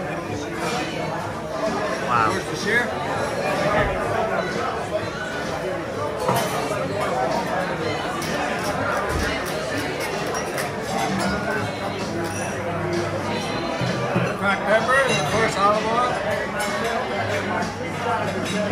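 A crowd of diners chatters steadily in a busy, echoing room.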